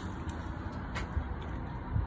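A latch clicks as a small hatch opens.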